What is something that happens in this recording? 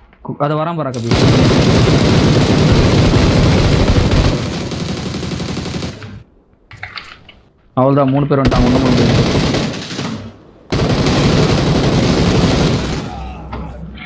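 Rifle shots ring out in rapid bursts.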